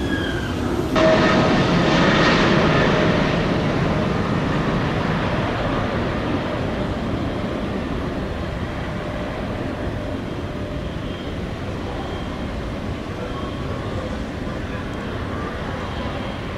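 A jet airliner's engines roar loudly as it climbs away, slowly fading.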